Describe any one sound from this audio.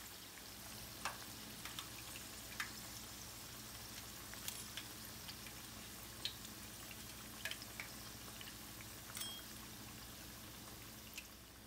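A metal strainer clinks against the rim of a pan.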